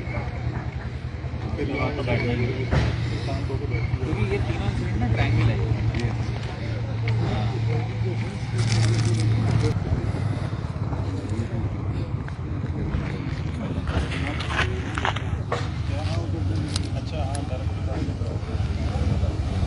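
Several men talk with one another nearby, outdoors.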